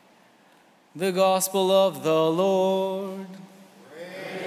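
A young man chants into a microphone in a large echoing hall.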